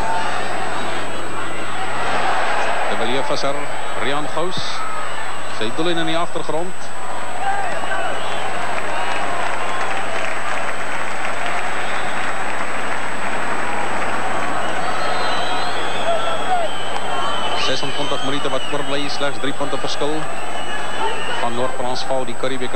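A large crowd roars and cheers in an open stadium.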